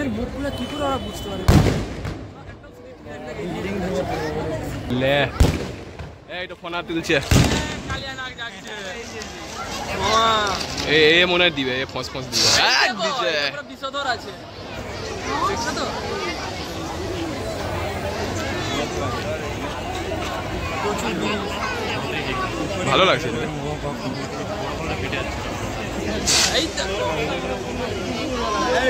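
Fireworks crackle and fizz steadily.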